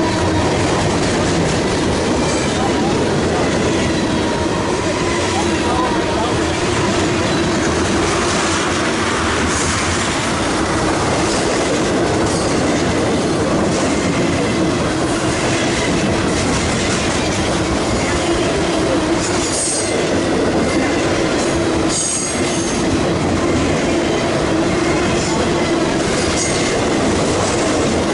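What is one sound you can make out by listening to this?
Metal wheels squeal against the rails.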